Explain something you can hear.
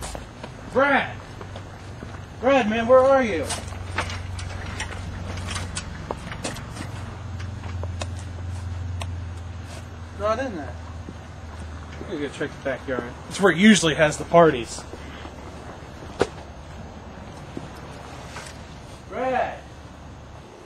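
A young man calls out loudly nearby.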